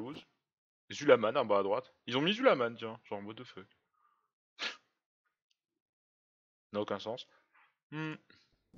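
A middle-aged man talks with animation into a microphone, close by.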